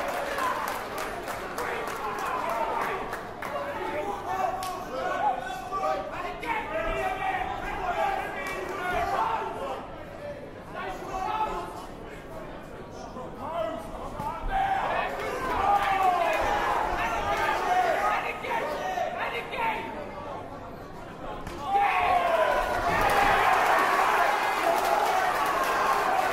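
A large crowd shouts and cheers in an echoing hall.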